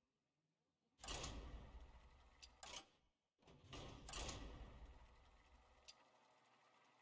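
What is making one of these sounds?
A mechanical wheel whirs and rattles as it spins.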